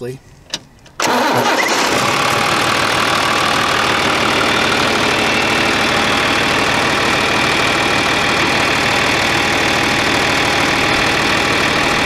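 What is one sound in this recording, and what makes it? A diesel tractor engine rumbles loudly close by.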